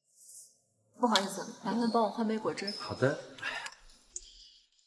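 A young woman asks politely, close by.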